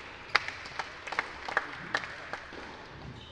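A tennis ball bounces repeatedly on a hard court.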